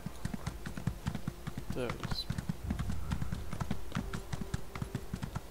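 Horse hooves thud rapidly on snowy ground at a gallop.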